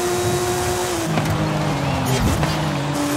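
A racing car engine drops in pitch as the car slows down.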